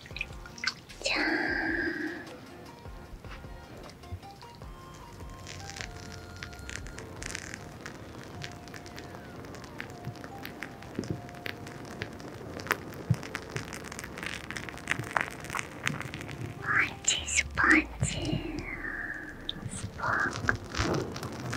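A young woman whispers softly close to the microphone.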